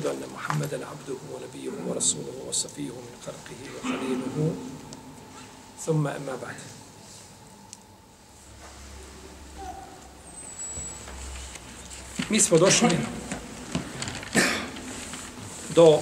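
A middle-aged man speaks calmly and slowly through a close microphone.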